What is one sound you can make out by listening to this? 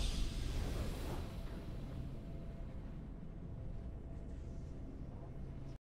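A game's victory fanfare plays with a bright swelling chime.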